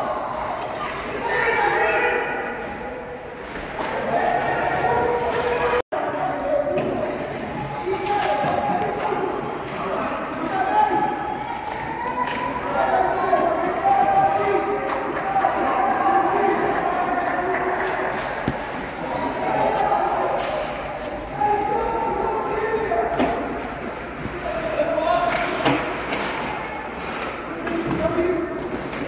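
A crowd of adults shouts and cheers in an echoing arena.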